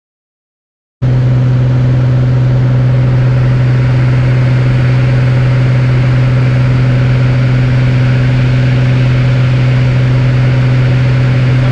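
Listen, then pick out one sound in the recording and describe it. A small plane's propeller engine drones loudly and steadily.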